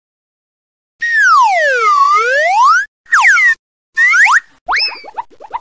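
A cartoon yo-yo zips down and up with sliding whistle effects.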